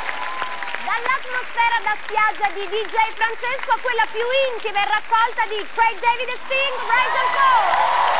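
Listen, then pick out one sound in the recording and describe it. A young woman sings into a microphone with a loud, clear voice.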